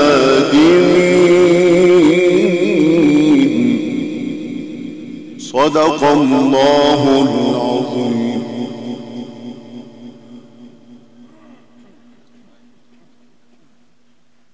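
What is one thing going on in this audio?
A man chants a long, melodic recitation through a loudspeaker in a large echoing hall, the sound slowly fading away.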